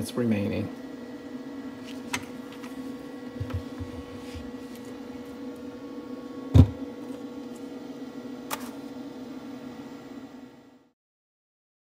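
A fan in a portable power station hums steadily.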